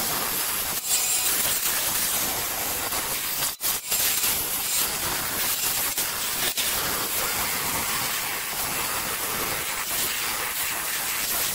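A band saw whirs steadily as it cuts through wood.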